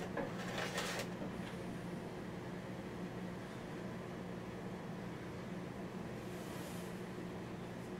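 Clothing fabric rustles close by.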